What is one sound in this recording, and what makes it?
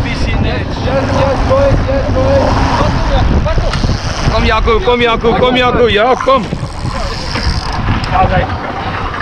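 Water splashes and rushes behind a moving boat.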